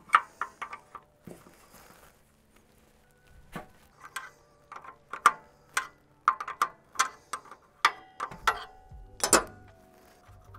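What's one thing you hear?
A wrench clicks and taps against metal fittings.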